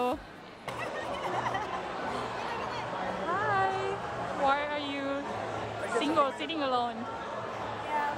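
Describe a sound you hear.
A crowd chatters in the background of a busy room.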